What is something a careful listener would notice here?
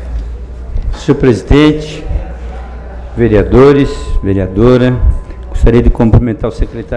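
A middle-aged man speaks calmly into a microphone, heard through loudspeakers in an echoing hall.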